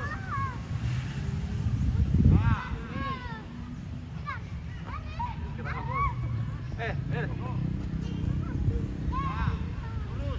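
Children kick soccer balls on grass with soft thuds.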